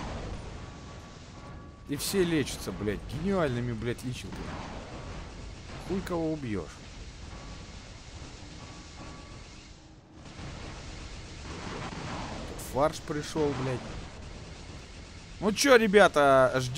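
Gunfire and explosions rumble from a game.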